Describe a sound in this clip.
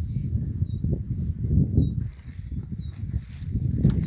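A man's footsteps crunch on rocky ground.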